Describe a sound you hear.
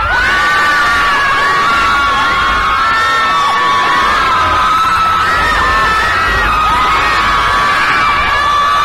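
A large crowd of young women screams loudly and shrilly in a big echoing hall.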